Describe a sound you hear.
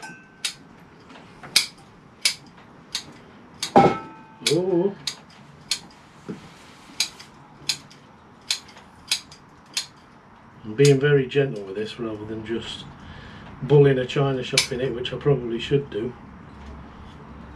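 Pruning shears snip sharply at a steady pace.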